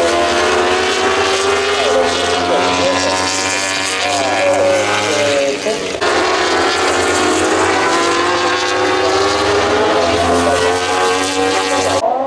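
Racing superbike engines scream at high revs as bikes pass by.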